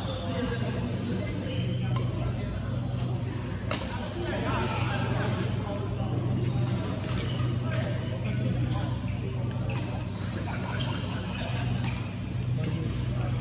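Shuttlecocks are struck with sharp taps by rackets in a large echoing hall.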